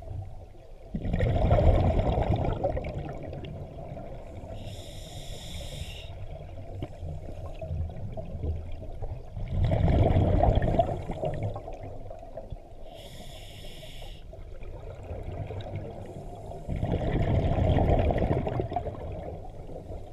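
Exhaled bubbles burst and rumble underwater.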